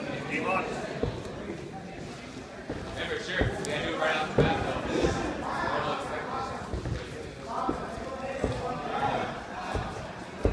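Bare feet thump and shuffle on a mat as two men grapple.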